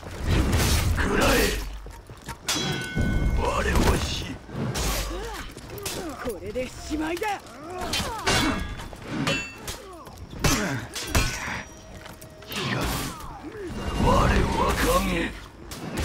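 Blades clash and strike with sharp metallic hits.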